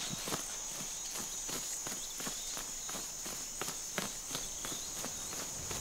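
Large birds flap their wings noisily.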